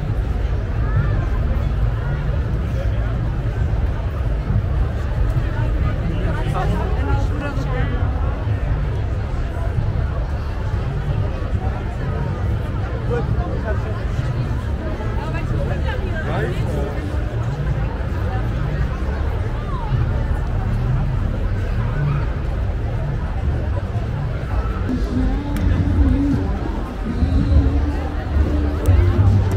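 A large crowd chatters and calls out outdoors.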